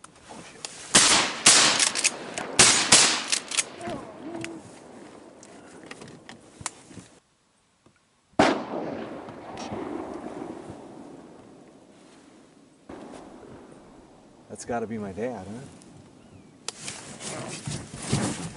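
A shotgun fires loud, sharp blasts close by.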